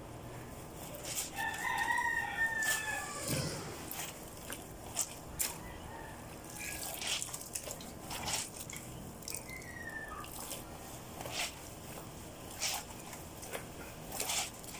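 Wet cloth splashes and rustles as it is washed by hand.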